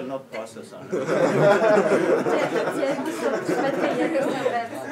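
A crowd of young men chatters in a room.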